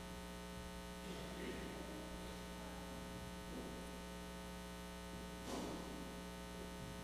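An elderly man speaks softly through a microphone in an echoing hall.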